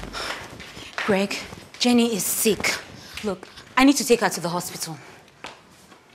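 A young woman speaks loudly with agitation.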